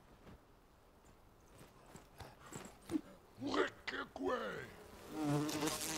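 An axe strikes a creature with dull thuds.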